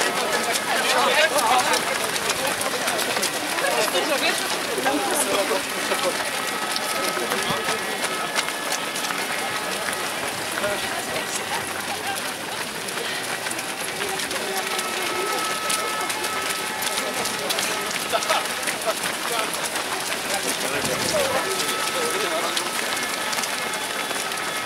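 Many runners' footsteps patter and splash on a wet road.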